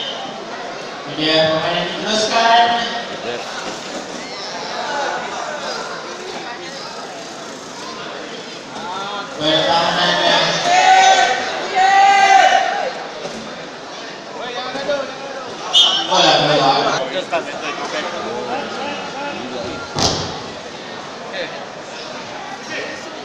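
A crowd of people chatters in a large hall.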